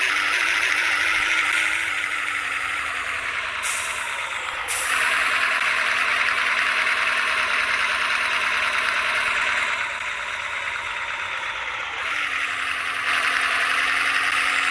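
A bus engine hums steadily and drops in pitch as the bus slows.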